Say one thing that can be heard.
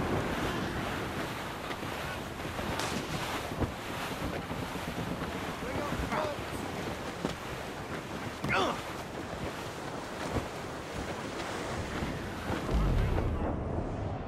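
Wind blows through sails and rigging.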